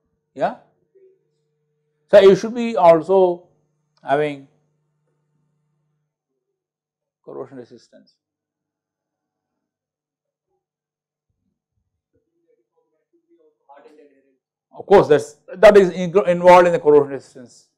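An older man speaks calmly into a close microphone, with pauses.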